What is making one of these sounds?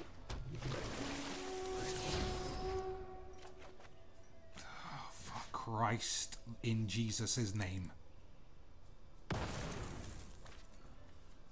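Digital chimes and whooshes sound as cards are played.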